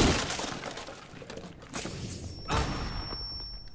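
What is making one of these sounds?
Gunshots crack in quick bursts at close range.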